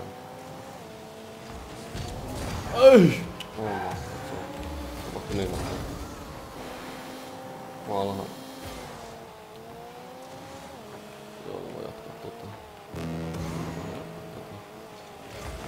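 A car engine hums steadily, its pitch shifting up and down.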